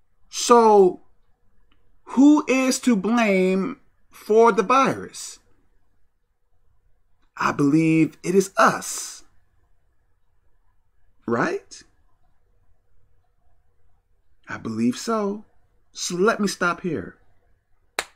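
A man talks calmly and close to a microphone, in short bursts with pauses.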